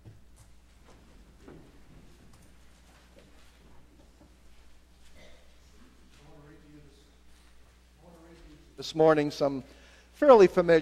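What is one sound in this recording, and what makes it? A man speaks through a microphone in a large echoing hall, growing loud and impassioned.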